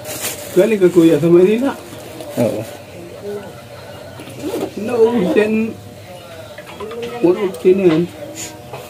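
A man speaks weakly and slowly from close by.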